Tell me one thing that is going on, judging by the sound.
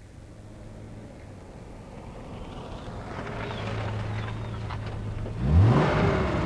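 A car engine grows louder as a car approaches.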